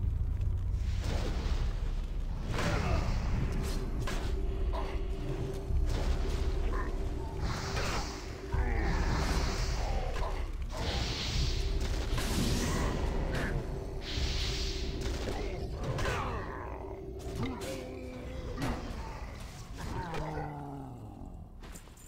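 Weapons clash repeatedly in a fight.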